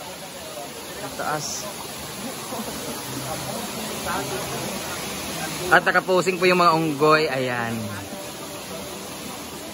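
A waterfall rushes steadily nearby.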